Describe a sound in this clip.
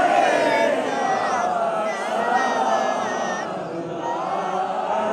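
A group of men chant together in unison, loud and close.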